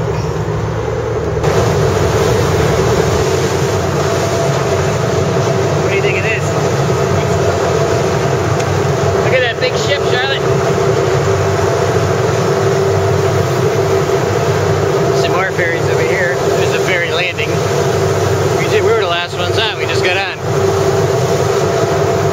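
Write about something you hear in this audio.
A ferry engine drones steadily.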